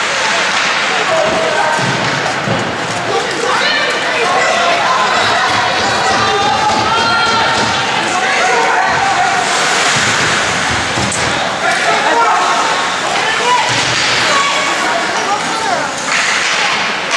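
Young men shout to each other across an echoing ice rink.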